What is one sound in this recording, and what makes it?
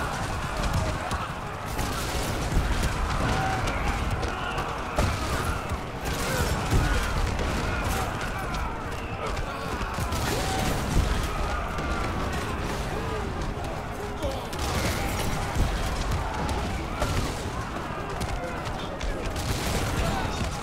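Heavy weapons fire in rapid bursts.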